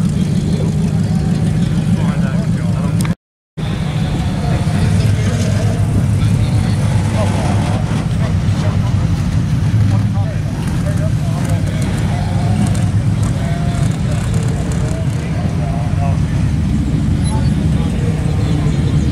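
A crowd chatters in the distance outdoors.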